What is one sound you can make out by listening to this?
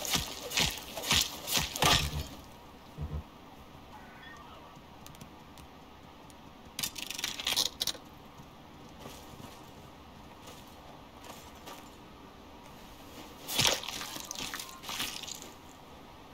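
A knife cuts wetly into flesh.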